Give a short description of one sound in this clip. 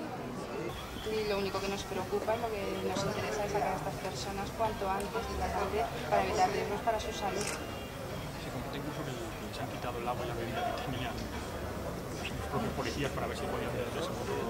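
A woman speaks calmly into several microphones close by.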